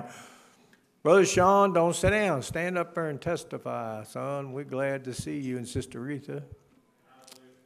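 An elderly man speaks forcefully into a microphone.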